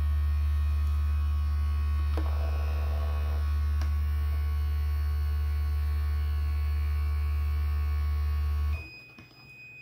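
A heat press hums steadily.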